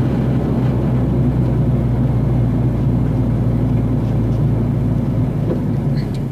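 Wind rumbles against a moving vehicle.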